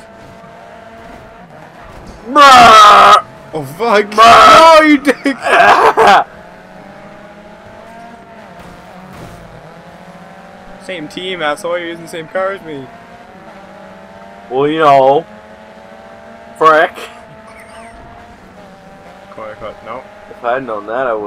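Racing car engines drone and rise in pitch as they speed up.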